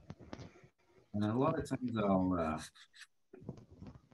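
Soft pastel scratches and rubs across paper, close by.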